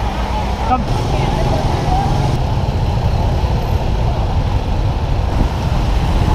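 Motorbike engines hum and putter in dense traffic nearby.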